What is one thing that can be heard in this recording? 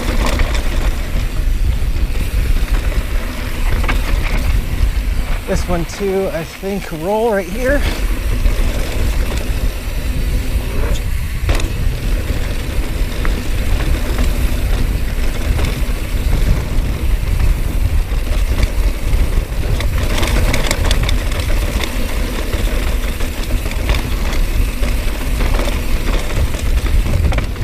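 Wind rushes loudly past a bike rider.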